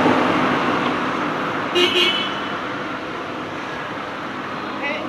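A car drives away along a road.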